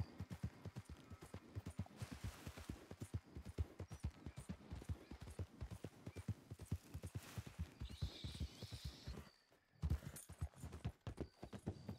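Horse hooves thud quickly and steadily on grass and then on gravel.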